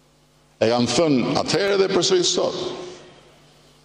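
An older man speaks emphatically into a microphone.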